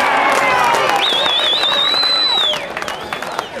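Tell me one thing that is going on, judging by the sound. An umpire blows a long, trilling whistle outdoors.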